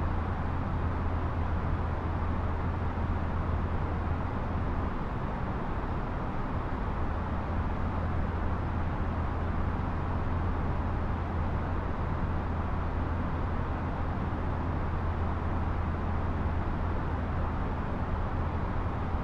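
A jet airliner's engines drone with a steady, muffled roar.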